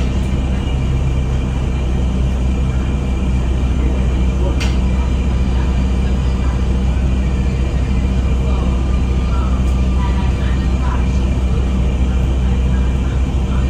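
A bus engine rumbles steadily from inside the bus.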